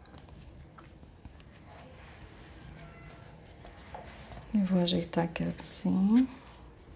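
Soft yarn rustles as hands rearrange it.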